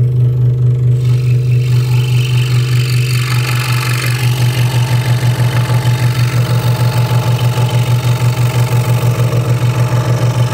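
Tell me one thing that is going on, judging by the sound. A scroll saw blade rasps through thin wood.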